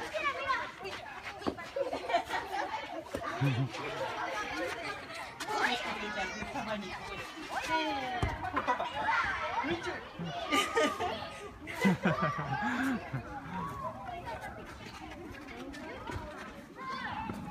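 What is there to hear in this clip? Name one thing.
A young child babbles and chatters close by.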